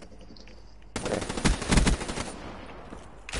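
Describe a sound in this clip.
Rapid gunfire rattles in short loud bursts.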